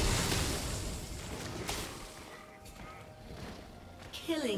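Fantasy battle sound effects whoosh and clash.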